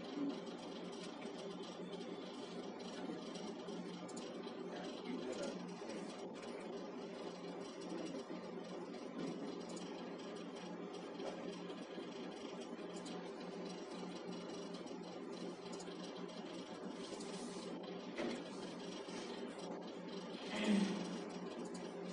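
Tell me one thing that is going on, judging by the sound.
Mouse clicks tap softly.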